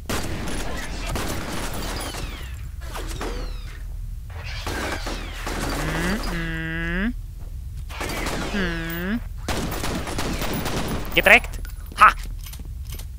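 Gunshots crack sharply several times, echoing off hard walls.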